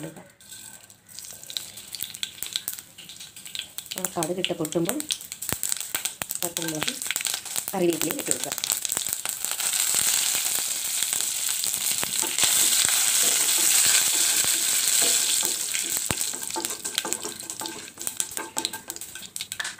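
Hot oil sizzles in a metal pan.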